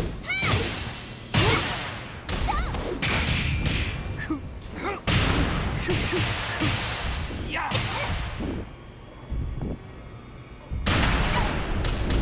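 Heavy punches and kicks land with loud thuds and whooshes.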